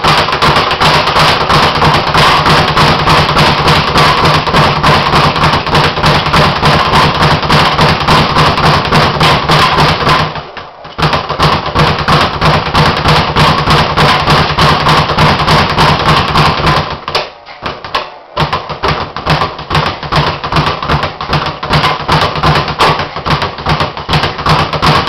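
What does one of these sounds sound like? A speed bag rattles rapidly against its board under fast punches.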